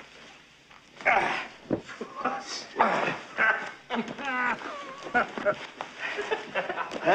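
Several men grunt and shout as they wrestle a large animal.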